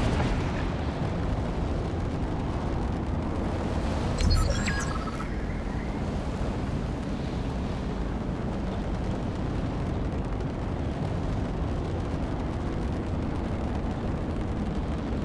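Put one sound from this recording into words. Rocket thrusters roar steadily as a flying machine soars.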